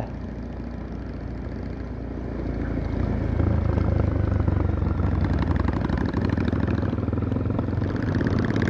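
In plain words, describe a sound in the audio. A motorcycle engine rumbles up close and grows louder as it speeds up.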